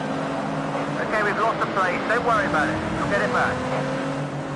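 Tyres squeal while a car corners hard.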